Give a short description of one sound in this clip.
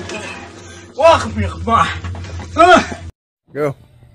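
A man shouts and yells in alarm.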